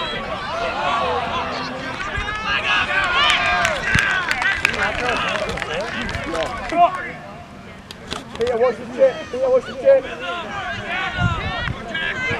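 A crowd of people shouts and cheers outdoors at a distance.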